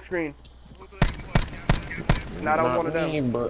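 A rifle fires several sharp shots.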